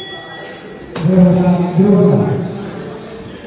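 A man shouts loudly nearby.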